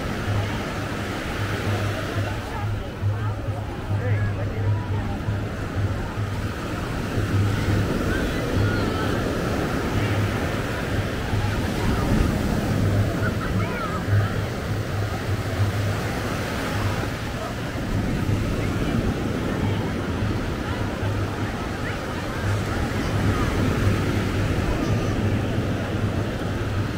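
Waves break and wash onto the shore.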